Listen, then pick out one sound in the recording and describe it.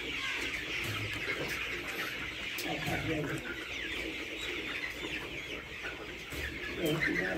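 Many chickens cluck and chirp all around, close by.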